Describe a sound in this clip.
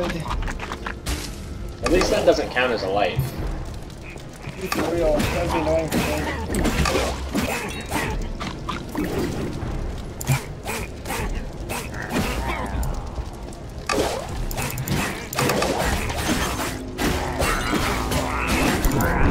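Sword blows land in a game battle.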